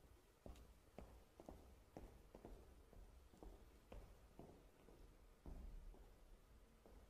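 Footsteps knock on a hollow wooden stage.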